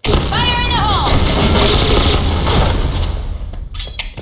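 Twin submachine guns fire in bursts.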